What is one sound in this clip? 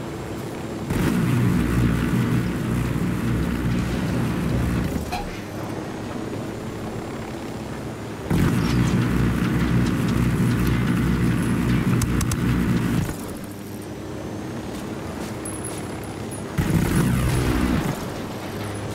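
Heavy machine-gun fire rattles in long bursts.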